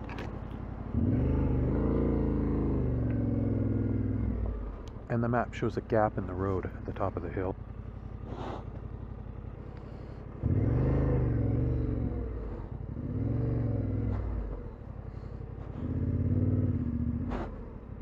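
A motorcycle engine revs up and settles back several times.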